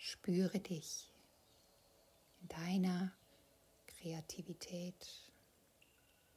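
A woman speaks calmly and softly close by.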